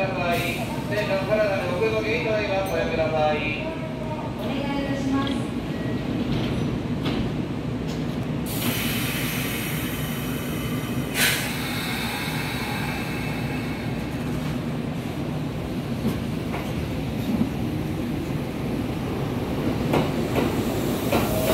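A train idles with a low steady hum.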